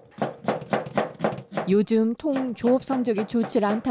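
A knife chops vegetables on a cutting board.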